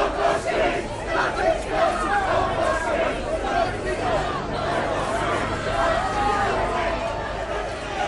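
A crowd of men and women shout close by.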